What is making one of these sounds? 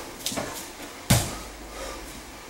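A body slams down hard onto a padded mat.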